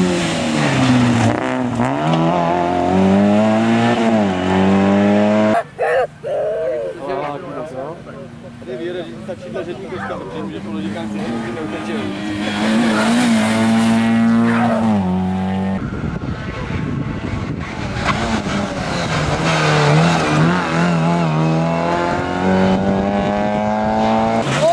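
A rally car engine revs hard and roars past, shifting gears.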